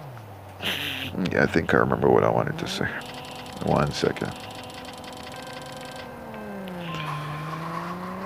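A sports car engine revs and roars as the car pulls away.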